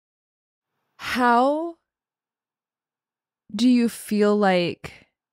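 A young woman speaks expressively into a close microphone, in short bursts with pauses.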